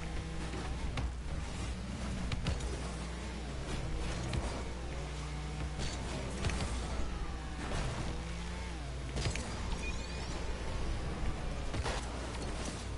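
A large ball is struck with sharp thuds.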